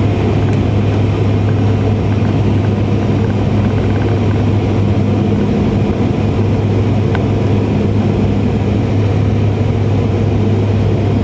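An aircraft engine drones steadily and loudly inside a cabin.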